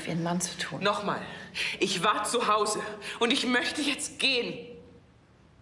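A woman speaks urgently and fast, close by.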